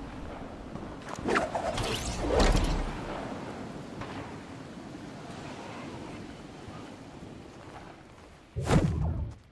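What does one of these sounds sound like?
Wind rushes past during a fast glide through the air.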